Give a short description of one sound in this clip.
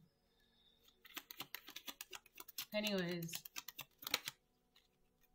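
Cards riffle and flutter as they are shuffled.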